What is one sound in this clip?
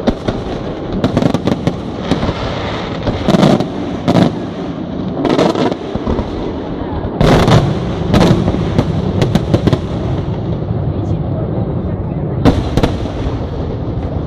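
Fireworks burst with loud booms and bangs.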